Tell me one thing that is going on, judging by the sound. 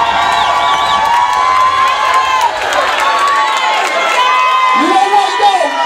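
A crowd cheers and screams excitedly.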